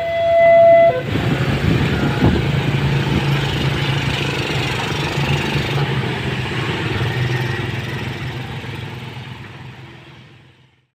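Motorbike engines idle and rev nearby.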